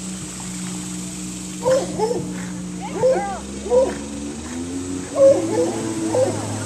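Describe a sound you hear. A small animal paddles softly through water.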